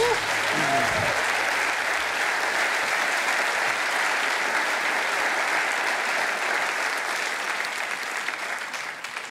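A large studio audience applauds loudly and steadily, then fades.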